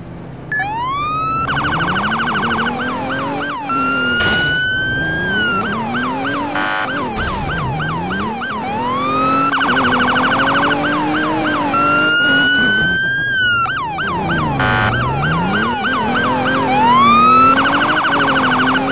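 A police siren wails and yelps throughout.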